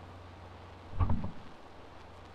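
A block of earth is set down with a dull, gritty thud.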